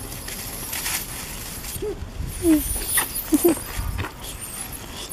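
Monkeys scuffle and tussle in dry dirt.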